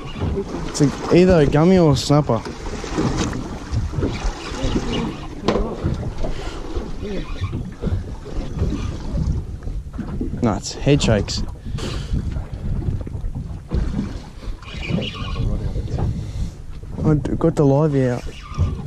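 A man on a boat calls out with excitement.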